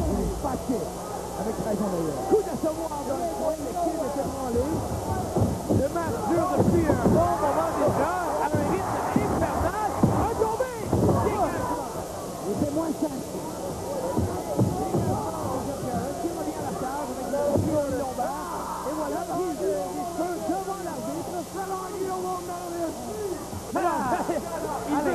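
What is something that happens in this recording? A crowd cheers and roars in a large hall.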